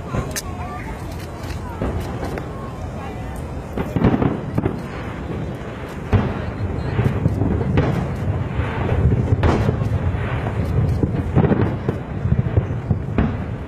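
Fireworks boom and crackle in the distance, echoing across the open air.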